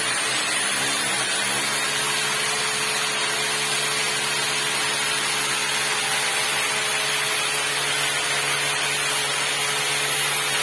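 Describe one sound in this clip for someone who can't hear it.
A power drill whirs as it bores overhead.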